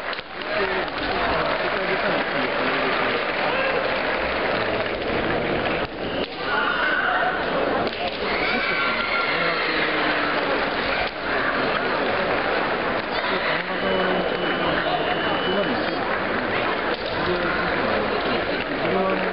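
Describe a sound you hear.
A crowd in a large echoing hall chatters and cheers throughout.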